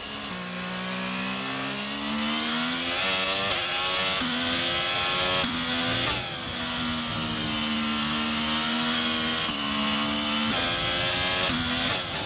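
A racing car engine screams at high revs, rising in pitch through each gear and dropping sharply at each gear change.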